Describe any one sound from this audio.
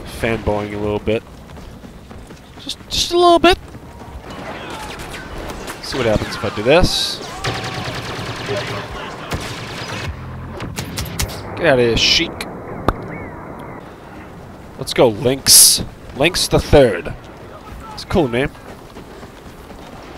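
Blaster shots crack in quick bursts.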